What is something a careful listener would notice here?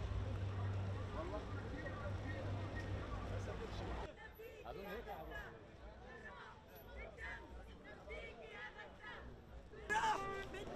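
A large crowd of marchers chants and talks outdoors.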